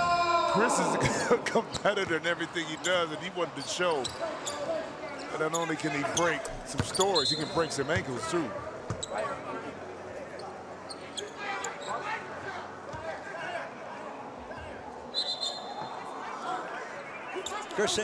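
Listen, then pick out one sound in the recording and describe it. A crowd murmurs in a large echoing arena.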